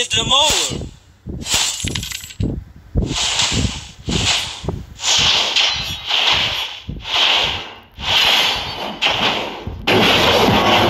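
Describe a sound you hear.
Sword strikes and magic blasts hit in quick, repeated bursts.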